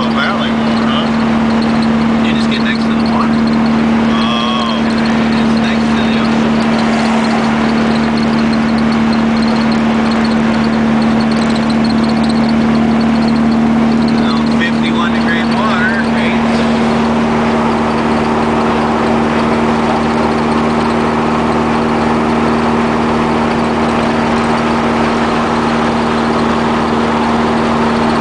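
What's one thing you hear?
Wind rushes loudly past the moving car.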